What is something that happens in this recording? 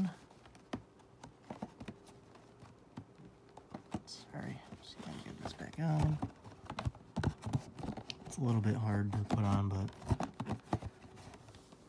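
A plastic box set clicks and rustles as it is handled.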